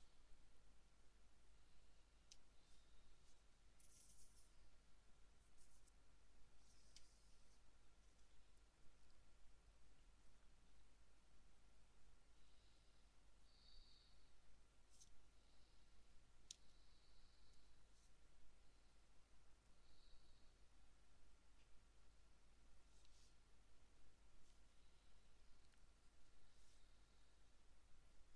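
Small clay figures tap and rustle softly on a tabletop.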